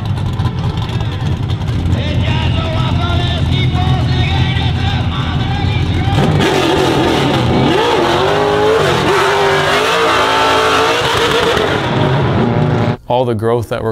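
A car engine roars and revs hard.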